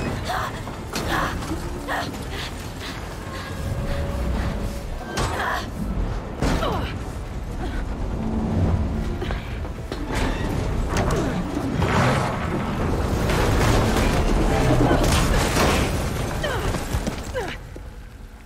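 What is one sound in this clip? Rubble crashes and tumbles down.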